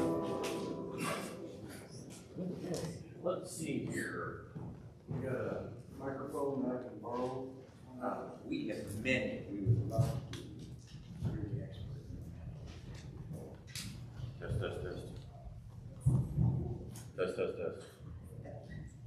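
An older man speaks calmly from a lectern.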